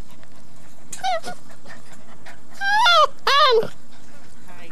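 Puppies yelp and whine up close.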